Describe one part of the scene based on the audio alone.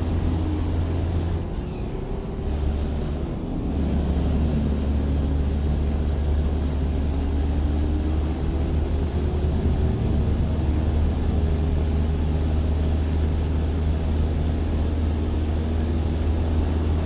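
A truck engine drones steadily with road rumble.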